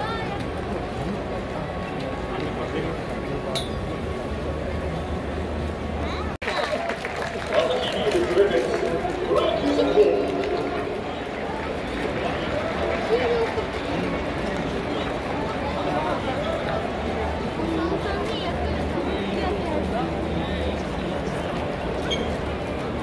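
A large crowd murmurs and chatters in a big echoing stadium.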